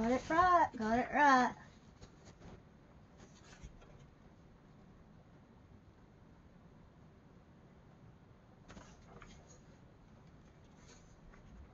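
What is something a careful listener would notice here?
Paper pages of a book rustle as they are turned.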